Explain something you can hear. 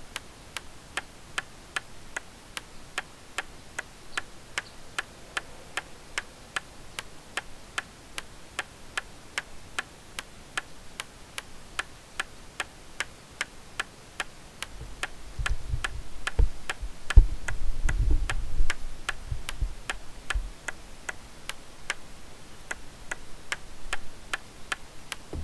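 A wooden club strikes a wooden wall again and again with dull thuds.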